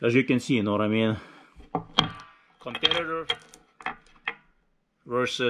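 Small metal parts click and tap against a wooden board.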